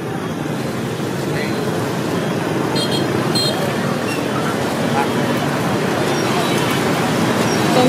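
A thin plastic bag rustles as it is handled.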